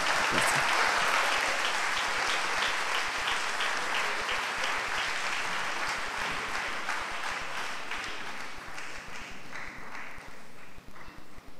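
An audience applauds loudly in a large hall, then the clapping fades away.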